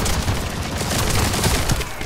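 Energy blasts explode with loud crackling bursts.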